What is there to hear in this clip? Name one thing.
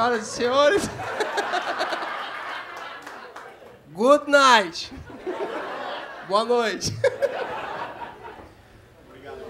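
An audience laughs.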